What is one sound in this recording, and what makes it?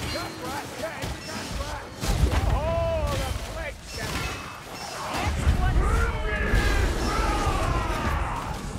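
Blades slash and thud into bodies in a hectic fight.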